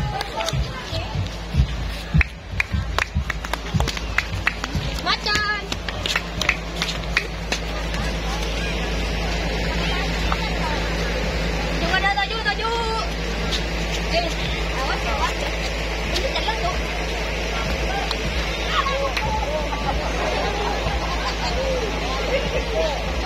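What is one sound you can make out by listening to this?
A small crowd of children and adults chatters outdoors.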